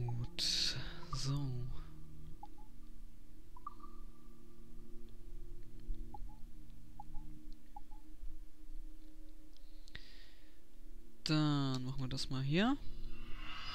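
Short electronic menu chimes sound now and then.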